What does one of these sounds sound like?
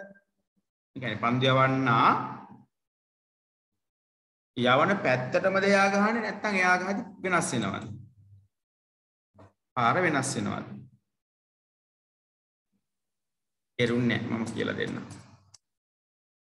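A man speaks calmly in short bursts, heard through an online call.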